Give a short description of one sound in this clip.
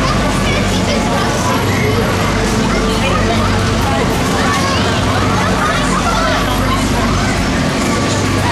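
A fairground swing ride whirs and rumbles steadily as it spins.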